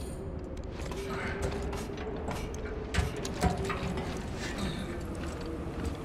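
Boots clank on metal ladder rungs.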